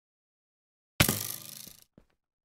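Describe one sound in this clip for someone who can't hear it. Arrows thud as they hit.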